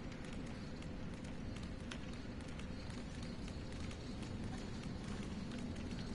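Footsteps thud on wooden boards as a figure runs.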